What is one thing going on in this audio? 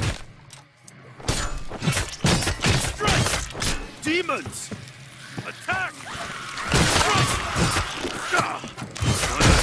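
A blade slashes and squelches through flesh.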